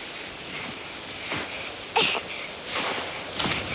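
Feet crunch through deep snow.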